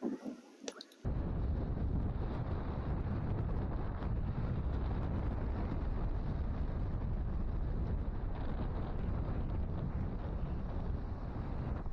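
Strong wind buffets the microphone with a loud rumble.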